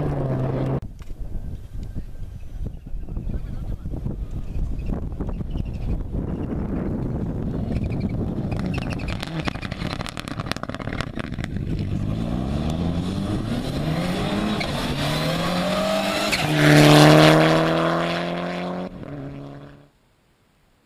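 Gravel sprays and crunches under a rally car's tyres.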